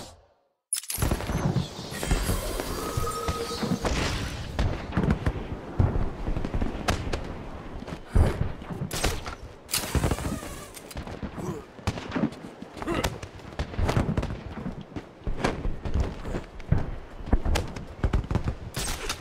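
Wind rushes past as a cape flaps.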